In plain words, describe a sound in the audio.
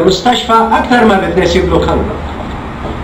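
A middle-aged man speaks with animation through a television speaker.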